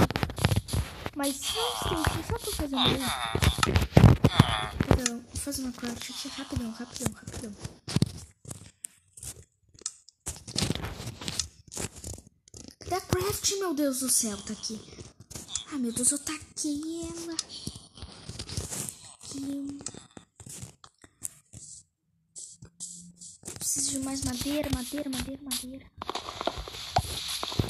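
A young person talks with animation close to a microphone.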